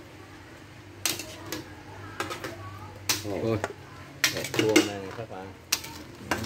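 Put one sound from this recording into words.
Metal pots clank as they are moved.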